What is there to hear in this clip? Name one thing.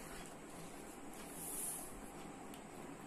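A sheet of paper rustles as it is moved.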